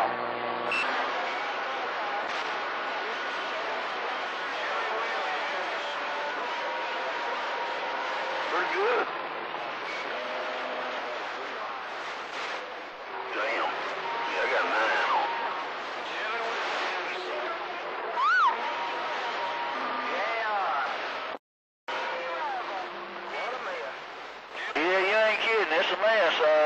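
A radio receiver gives off wavering whistles and steady tones through the static.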